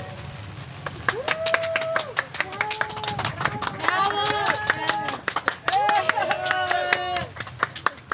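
Women clap their hands.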